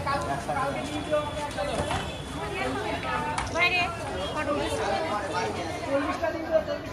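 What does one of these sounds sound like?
A crowd of people chatters nearby in a busy space.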